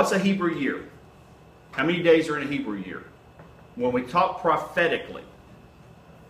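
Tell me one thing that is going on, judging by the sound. A middle-aged man speaks calmly and clearly nearby, with short pauses.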